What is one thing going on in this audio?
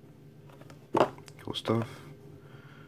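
A cardboard box is set down on a table with a light knock.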